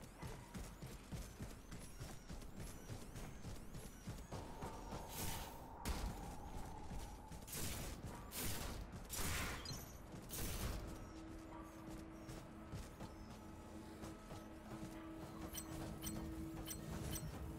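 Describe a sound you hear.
Heavy metallic footsteps thud quickly along the ground.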